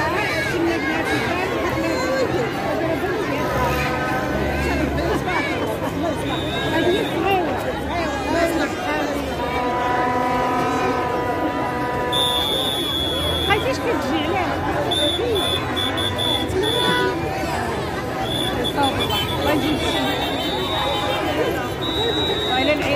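A large crowd shouts and chants loudly outdoors.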